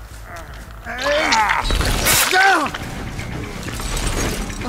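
A blade swings and strikes with a sharp whoosh.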